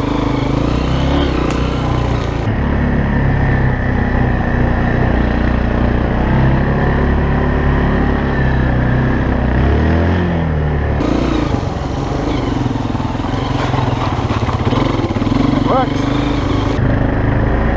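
A dirt bike engine roars close by.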